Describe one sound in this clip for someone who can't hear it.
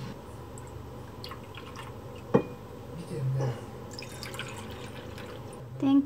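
Liquid pours from a bottle into a small glass cup.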